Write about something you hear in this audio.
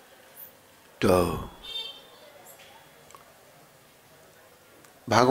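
An elderly man sings loudly into a microphone in short bursts.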